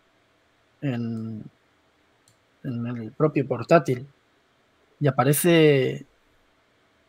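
A man speaks in short bursts over an online call.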